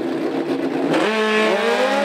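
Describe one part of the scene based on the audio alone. A racing motorcycle engine revs up sharply.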